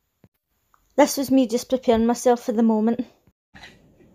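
A woman speaks close to the microphone with animation.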